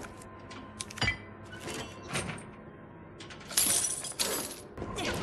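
Heavy bolt cutters snap through a metal chain.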